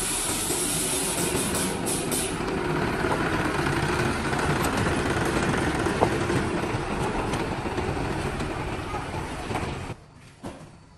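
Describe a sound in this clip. A truck engine rumbles as the truck drives slowly.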